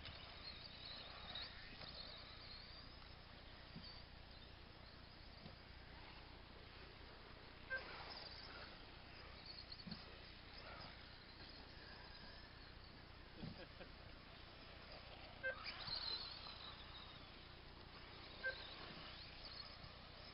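A small remote-control car whines as it races over grass.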